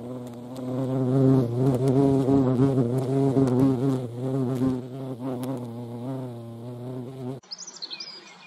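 A hornet buzzes loudly close by.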